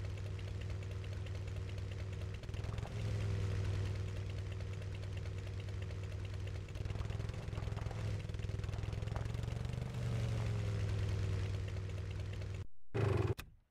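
A motorcycle engine hums steadily as the bike rides over rough ground.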